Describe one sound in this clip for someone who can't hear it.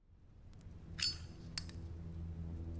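A metal lighter lid clicks open.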